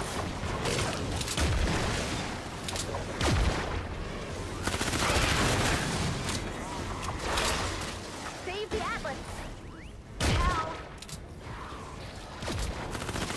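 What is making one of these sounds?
Weapons blast and thump in a noisy fight against monsters.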